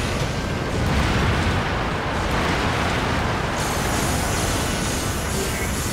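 Loud explosions rumble and crackle continuously.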